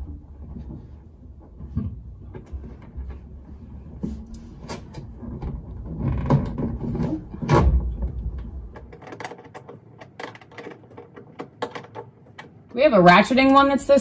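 Wires rustle and small plastic connectors click as hands work on them.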